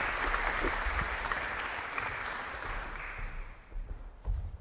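An audience applauds in a large hall, then the applause fades away.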